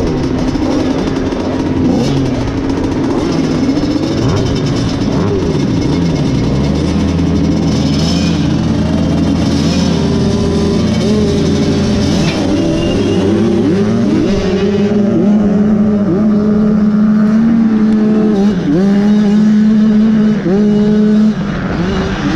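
Several motocross bike engines idle and rev loudly close by, rising and falling in pitch.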